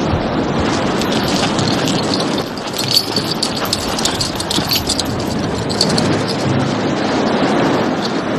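Many footsteps crunch on sand as a large group walks closer.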